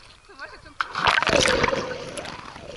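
A boy splashes into water after jumping.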